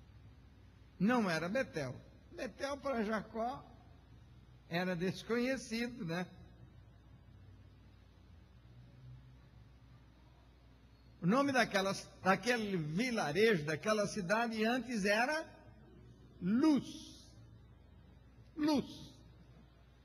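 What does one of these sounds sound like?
A middle-aged man speaks forcefully into a microphone, his voice amplified in a room.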